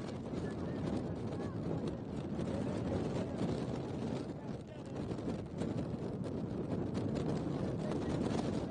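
Young women players call out faintly across an open field.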